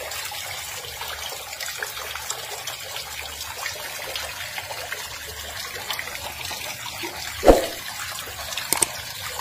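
Crayfish claws click and scrape against a plastic tub.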